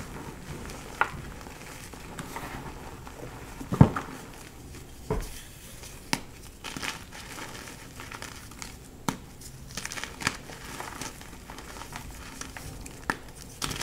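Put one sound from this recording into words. Chalky blocks crunch and crumble between fingers.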